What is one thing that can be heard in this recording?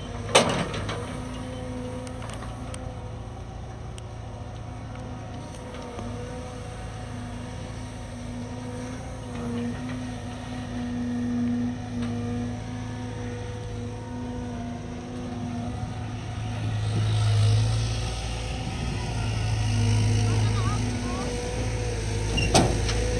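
A diesel excavator engine hums and drones steadily nearby.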